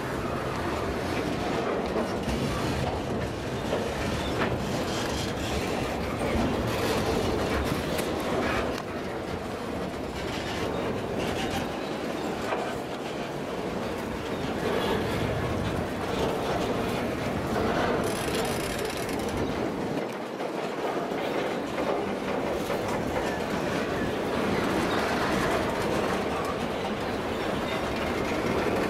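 A long freight train rumbles steadily past, close by.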